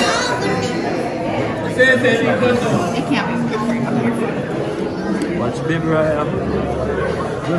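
Many adults chatter and talk at once close by.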